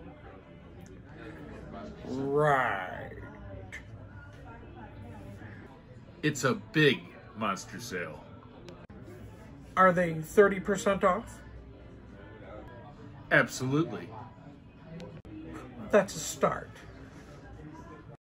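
A young man talks and exclaims in a lively way close by.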